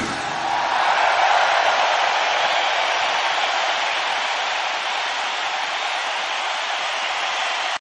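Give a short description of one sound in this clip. A huge crowd cheers and roars in a large arena.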